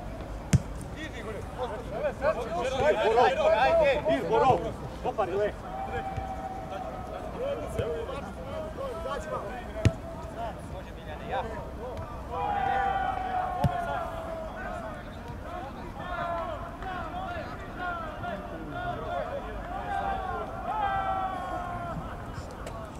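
Young men shout and call to one another across an outdoor pitch.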